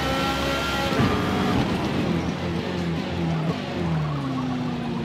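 A racing car engine drops in pitch as the car brakes for a corner.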